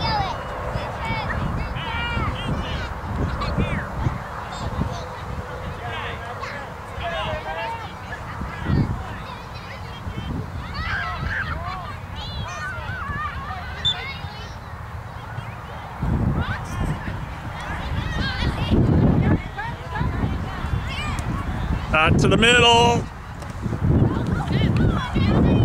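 Men and women on a sideline chat and call out nearby.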